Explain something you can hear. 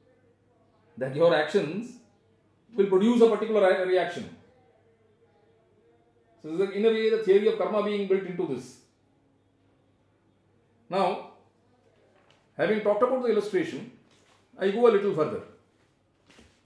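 A middle-aged man speaks calmly and thoughtfully, close by, in short bursts with pauses.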